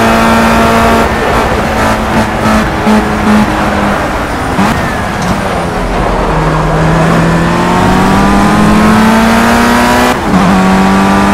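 A racing car's gears shift with quick jolts in the engine note.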